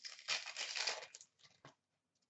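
Trading cards are flicked through by hand, with a soft papery rustle.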